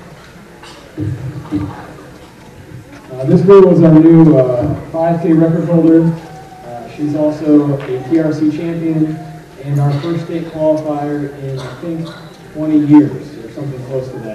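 A young man speaks calmly into a microphone over a loudspeaker, in a large echoing hall.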